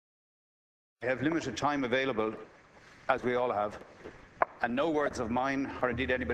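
An older man speaks formally into a microphone.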